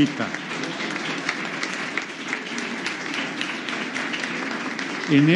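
A large crowd applauds in a large echoing hall.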